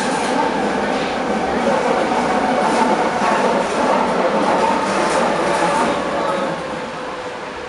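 A subway train rumbles and screeches along the tracks.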